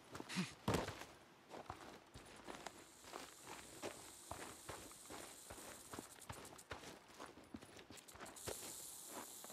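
Footsteps crunch on dry, grassy ground.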